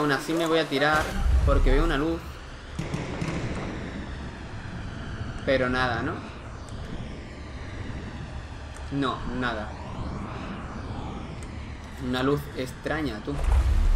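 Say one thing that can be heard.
Water bubbles and gurgles in a deep, muffled rush.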